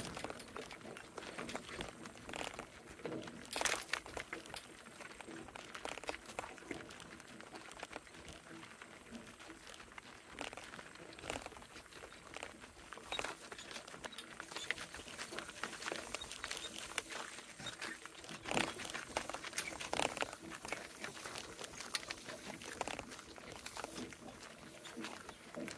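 A donkey's hooves clop steadily on a dirt track.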